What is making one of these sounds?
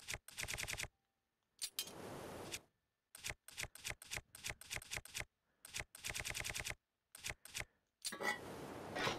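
Short electronic blips tick rapidly as a game menu is scrolled.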